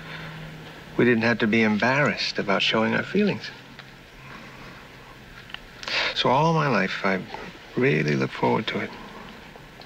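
An older man speaks quietly and earnestly, close by.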